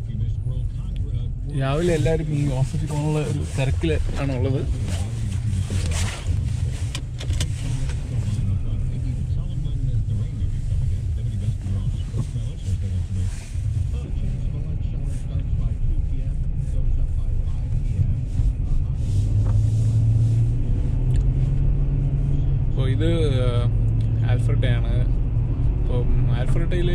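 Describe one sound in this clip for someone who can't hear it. A car engine rumbles low and steady from inside the car as it drives.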